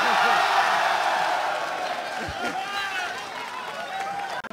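A large crowd cheers and shouts in a big hall, then fades.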